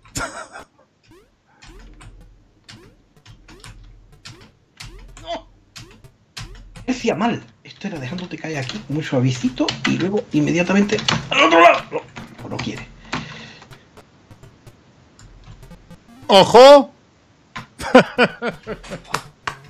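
Retro video game beeps and chimes play.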